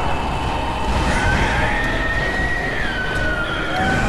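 A monstrous beast roars loudly.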